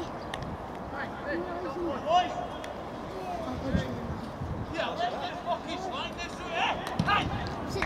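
Young men laugh and chat outdoors.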